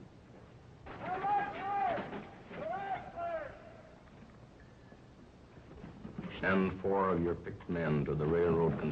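A second man answers in a rough voice, heard through an old recording.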